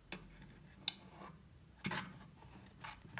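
A plastic knob clicks as it turns.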